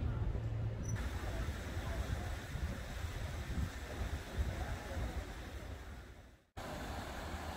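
Small boats putter across the water.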